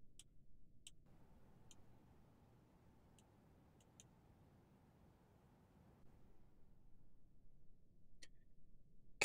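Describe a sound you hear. Short, soft interface clicks sound now and then.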